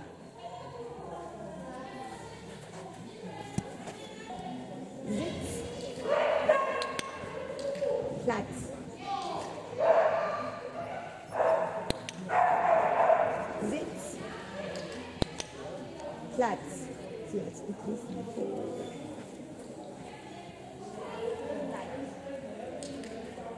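A woman speaks to a dog in a calm, encouraging voice nearby.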